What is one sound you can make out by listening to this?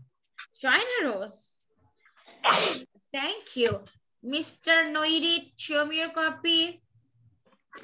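A young boy speaks with animation over an online call.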